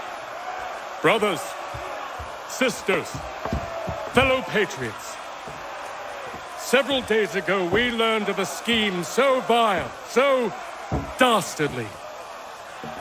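A middle-aged man proclaims loudly and forcefully to a crowd.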